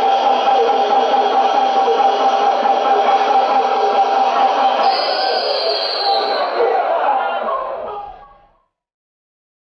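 A large crowd murmurs and cheers.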